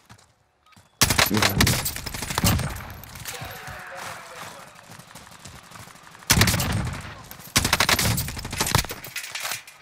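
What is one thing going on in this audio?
A rifle fires sharp, loud shots that echo.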